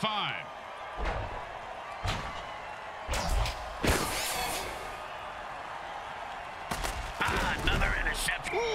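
Players collide with heavy thuds.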